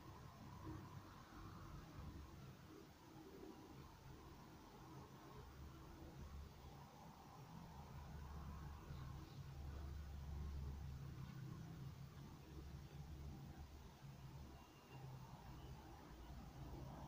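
Pens scratch softly on paper.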